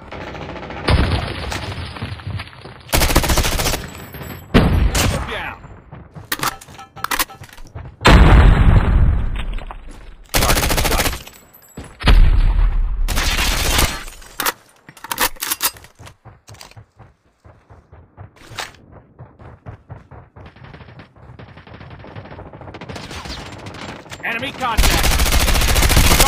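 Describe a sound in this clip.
Gunfire rings out in loud bursts.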